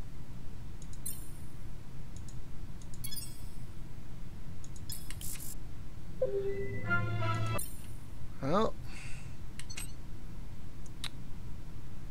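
Short electronic clicks and chimes sound now and then.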